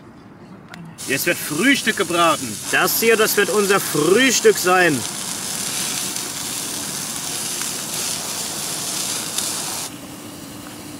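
Sausages sizzle on a small grill.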